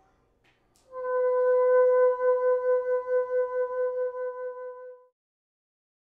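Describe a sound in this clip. A bassoon holds a long, steady low note that swells and then fades away.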